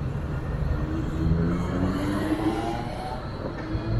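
A tram hums as it rolls past.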